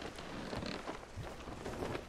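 Waves wash gently against a wooden ship.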